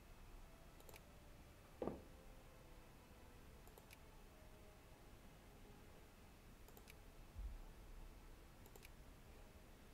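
Soft interface clicks sound as menus open and close.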